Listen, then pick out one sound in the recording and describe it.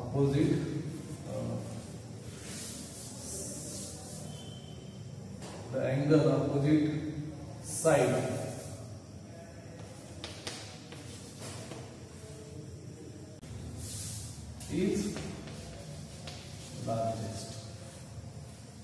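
A man speaks calmly in short phrases with pauses.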